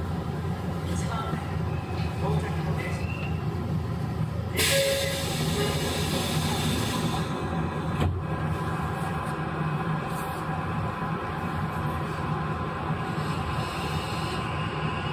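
An electric train hums steadily nearby.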